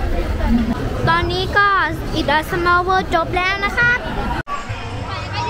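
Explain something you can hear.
A chorus sings a cheerful song through loudspeakers.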